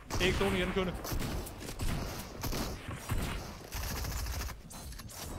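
Video game gunshots and building clatter pop in quick bursts.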